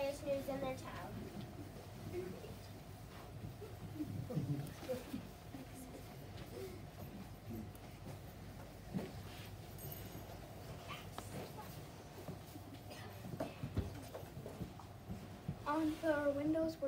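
A child speaks loudly and with animation, as if acting a part.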